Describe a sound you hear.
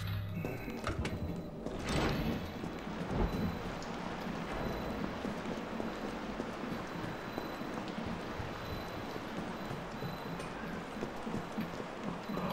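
A low hum drones in a large echoing space.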